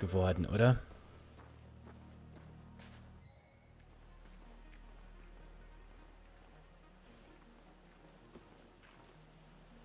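Footsteps crunch softly on gravel and grass.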